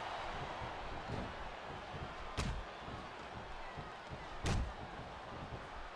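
A sledgehammer thuds against a wrestler's body.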